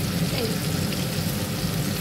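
Chopped potatoes drop from a spoon into a sizzling pan.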